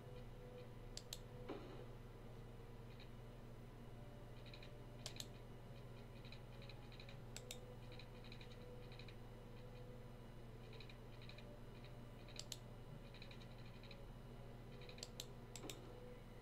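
Short game clicks sound as railway track is laid.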